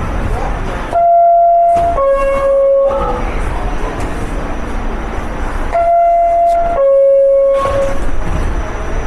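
A two-tone door chime sounds loudly, twice.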